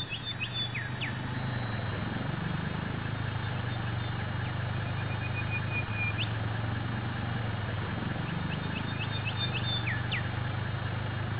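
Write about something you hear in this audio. A steam locomotive idles with a low, steady rumble.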